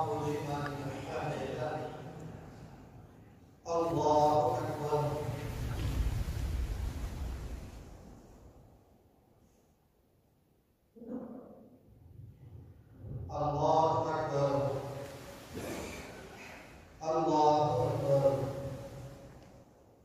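A man chants a prayer through a loudspeaker in a large echoing hall.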